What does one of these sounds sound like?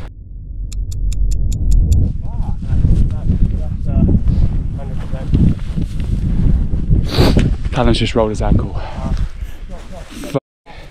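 Wind rumbles loudly across open ground.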